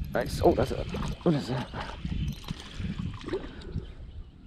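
A fishing reel clicks as its handle is wound.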